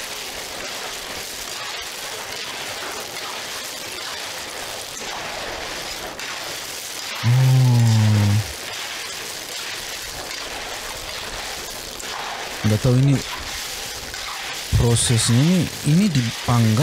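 Food sizzles and crackles in a hot pan.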